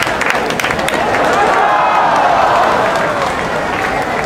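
A large crowd cheers loudly.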